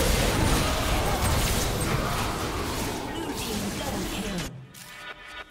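Magic spell effects crash and whoosh in a video game battle.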